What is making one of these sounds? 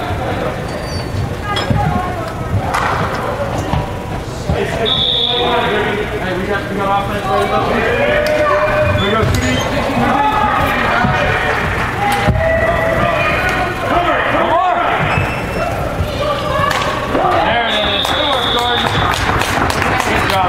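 Spectators and players shout and cheer in a large echoing indoor hall.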